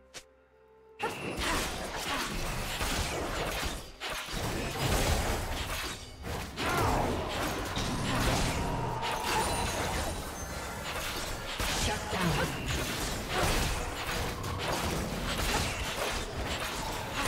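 Fantasy battle sound effects of magic spells and hits crackle and boom in rapid bursts.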